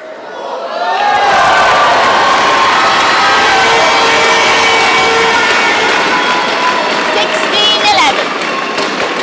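A crowd cheers and applauds loudly in a large echoing hall.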